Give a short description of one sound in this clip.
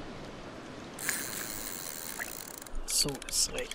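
A fishing rod is cast and its line whizzes out.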